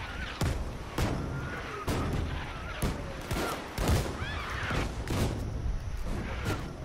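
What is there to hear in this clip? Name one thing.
Gunshots crack out in loud single blasts, echoing outdoors.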